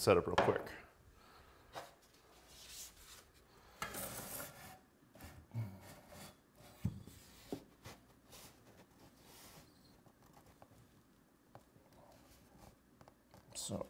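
Wooden boards knock and scrape against a table.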